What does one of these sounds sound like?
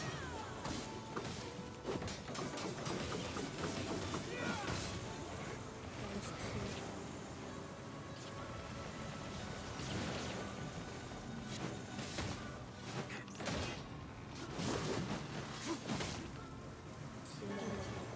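Swords clash and slash in rapid combat.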